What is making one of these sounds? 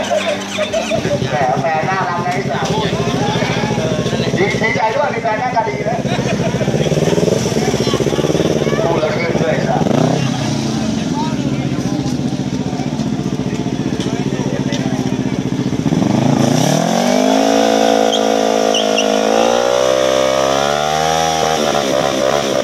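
A motorcycle engine idles and revs loudly nearby.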